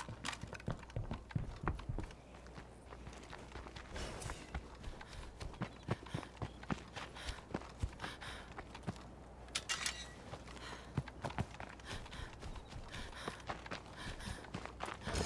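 Footsteps crunch quickly over dirt and grass.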